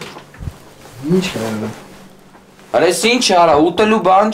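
Another young man answers calmly nearby.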